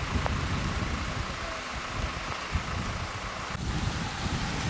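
Tyres hiss on a wet road as a car passes.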